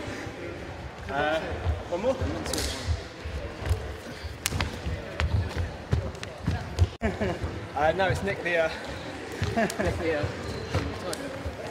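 A man talks in a large echoing hall.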